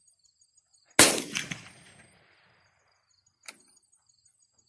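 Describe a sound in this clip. A pistol fires a loud shot outdoors, with a short echo.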